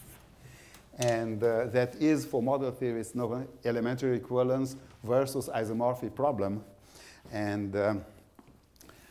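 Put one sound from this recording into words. A man speaks calmly, heard through a microphone in a large hall.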